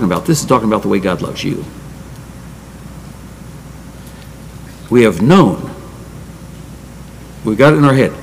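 An elderly man speaks deliberately into a microphone, with pauses.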